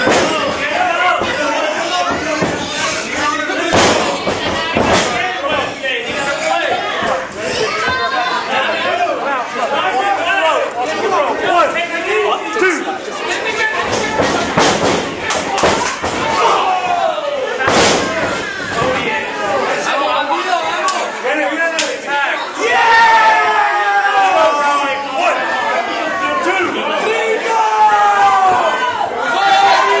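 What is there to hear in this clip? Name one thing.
Bodies slam onto a wrestling mat with loud thuds.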